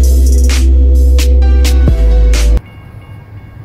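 A diesel locomotive engine rumbles loudly close by.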